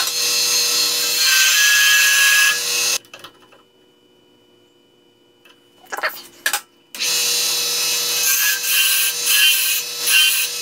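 A wood lathe hums as it spins.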